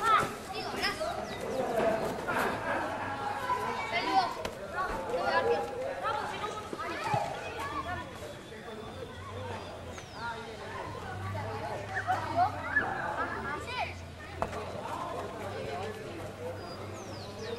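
Young boys shout and chatter with animation nearby.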